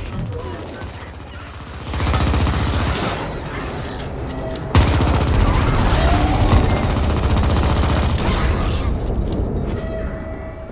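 Rapid gunfire rattles and booms in bursts.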